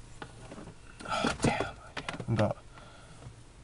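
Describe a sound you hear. A young man speaks briefly and quietly close to a microphone.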